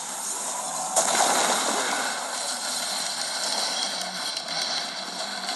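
Explosions boom in a video game.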